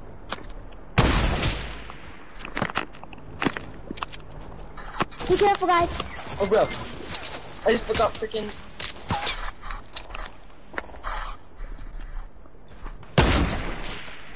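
A rifle fires loud single shots.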